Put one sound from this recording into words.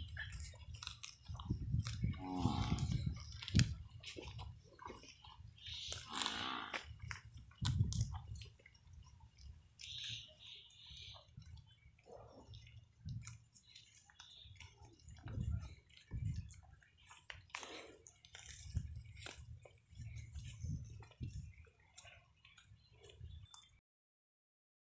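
A buffalo tears and munches dry grass close by.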